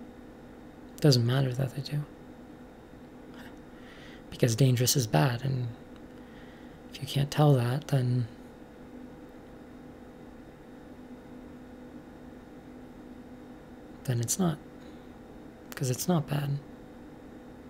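A young man speaks calmly in short bursts, close to the microphone, with long pauses.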